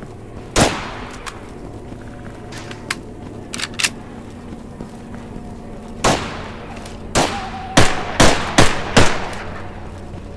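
Rifle shots crack loudly and echo.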